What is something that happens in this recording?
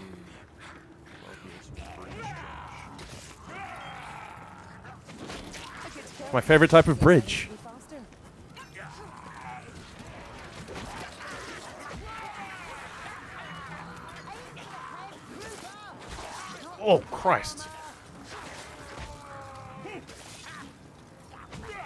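Blades slash and hack into creatures in quick fighting.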